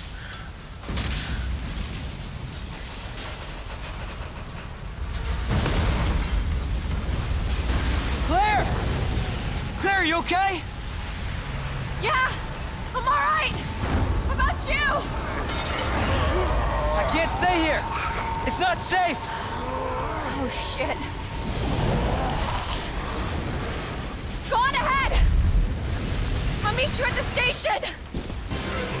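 Fires roar and crackle.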